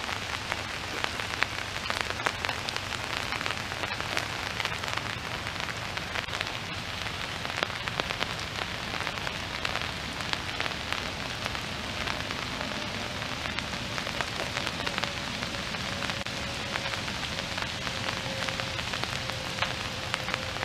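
Rain patters on a lake and on leaves.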